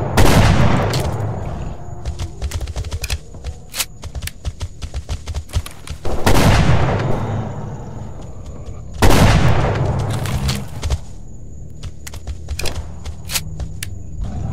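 Shotgun shells click into the gun as it is reloaded.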